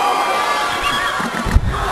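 A body slams down hard onto a wrestling ring mat.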